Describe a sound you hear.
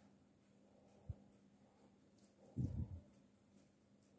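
A hand knocks against a bowl with dull thumps.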